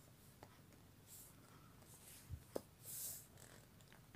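Small plastic parts click softly as hands handle a toy figure.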